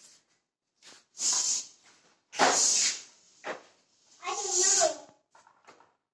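A floor pump hisses in short bursts as air is pushed through.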